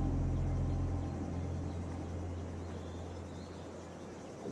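A deep whoosh of rushing wind swells and slowly fades.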